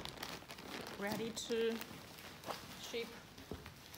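A plastic mailer bag crinkles and rustles.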